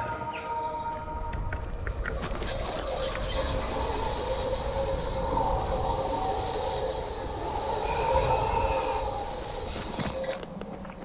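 Wind rushes loudly during a fast slide down a cable.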